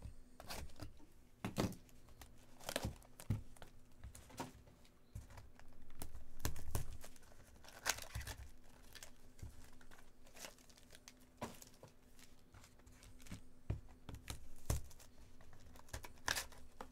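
Plastic wrappers crinkle and rustle as packs are handled.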